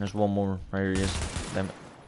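A rifle fires shots.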